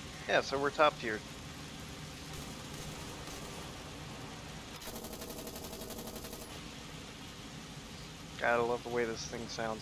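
A heavy tank engine rumbles low.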